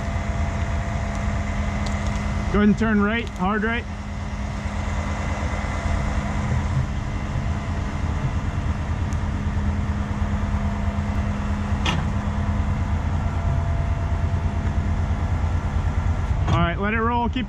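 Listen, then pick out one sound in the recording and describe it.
A truck's diesel engine idles with a steady low rumble.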